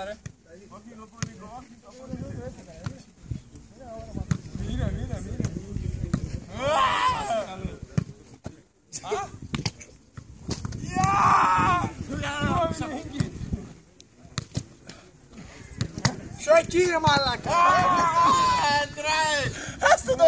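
A ball thuds as players kick it back and forth.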